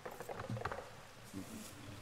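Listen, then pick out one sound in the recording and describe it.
Coins jingle briefly as they are picked up.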